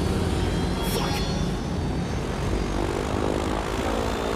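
A small plane's engine roars.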